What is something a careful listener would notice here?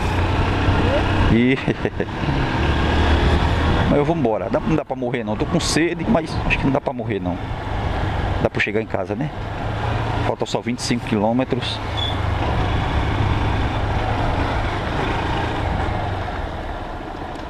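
A motorcycle engine hums steadily as it rides along.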